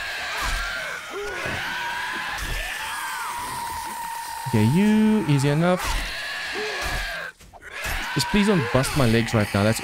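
A knife stabs into flesh with wet thuds.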